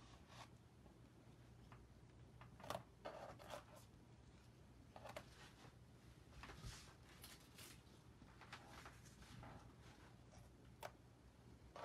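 Hands rustle and rub thin material against a canvas.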